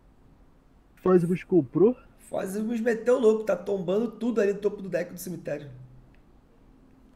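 A young man talks quickly and with animation through a microphone.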